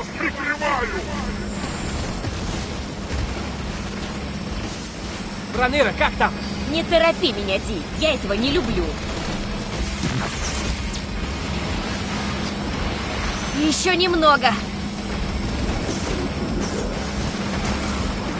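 Energy blasts zap and crackle again and again.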